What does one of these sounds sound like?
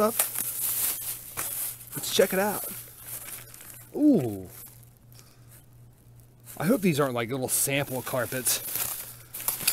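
A plastic bag rustles and crinkles as a hand rummages through it.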